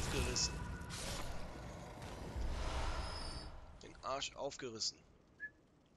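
A game character rummages through a corpse and picks up items.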